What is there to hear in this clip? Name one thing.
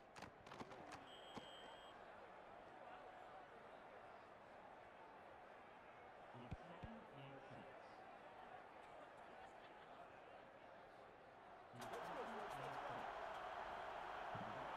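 A large crowd roars steadily and swells louder near the end.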